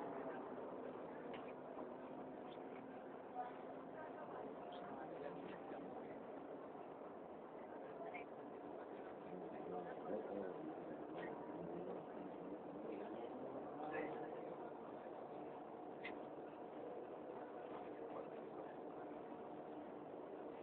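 Passengers murmur and talk in the background of a carriage.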